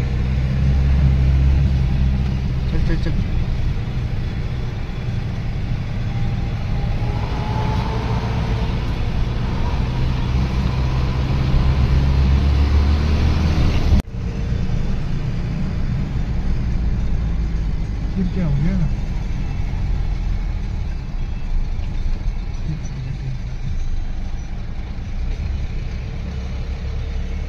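A car engine rumbles steadily from inside the vehicle.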